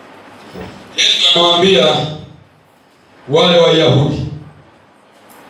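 A man speaks calmly and close by, in two short bursts.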